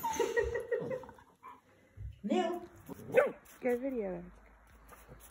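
A dog whines and yips playfully.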